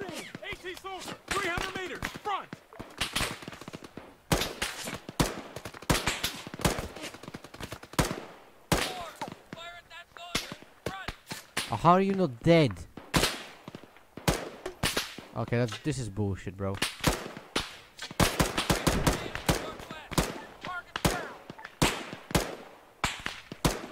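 Rifle shots crack again and again, close by.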